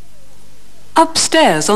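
A second woman answers calmly, close by.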